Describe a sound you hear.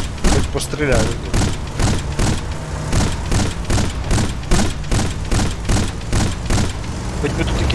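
A heavy gun fires in a fast, steady rhythm.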